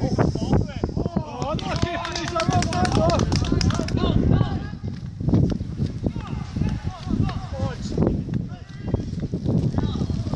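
Men shout across an open football pitch in the distance.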